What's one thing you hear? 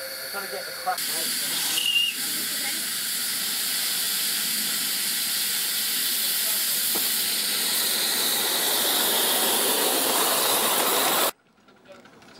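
A small steam locomotive hisses loudly as steam escapes.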